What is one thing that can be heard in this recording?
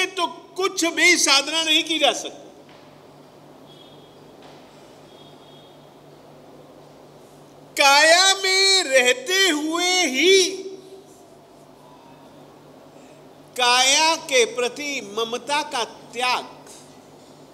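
An elderly man speaks forcefully into a microphone in short bursts with long pauses.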